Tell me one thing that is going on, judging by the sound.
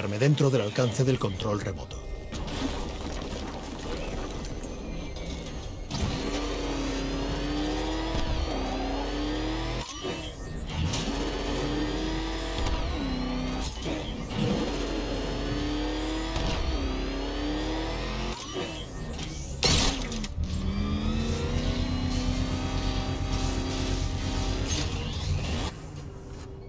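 An engine roars and revs as a vehicle speeds along.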